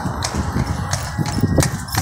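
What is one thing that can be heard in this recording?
A horse's hooves clop on the road.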